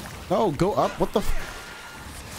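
A young man exclaims loudly into a microphone.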